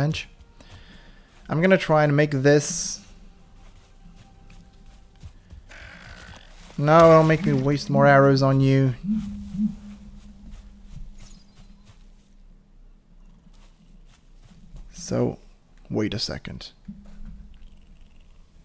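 A character's footsteps tread softly through grass.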